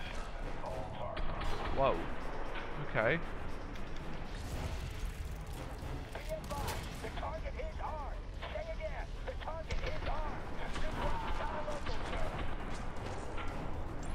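A rifle fires short bursts of shots.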